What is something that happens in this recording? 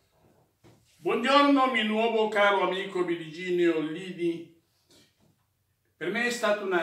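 An elderly man sings loudly and steadily, close by.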